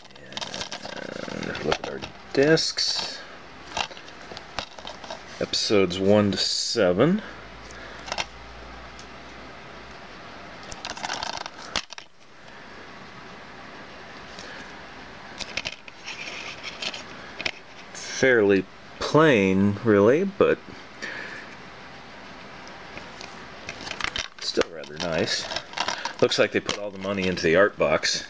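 Plastic cases rattle and tap as hands handle them.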